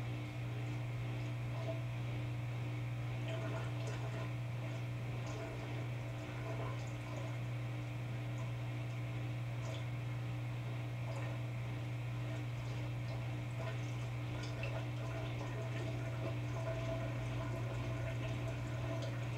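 Wet laundry tumbles and thumps softly inside a washing machine drum.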